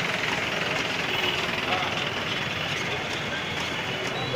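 A motor vehicle engine rumbles past.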